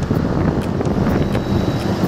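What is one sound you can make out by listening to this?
A truck engine rumbles as it drives by.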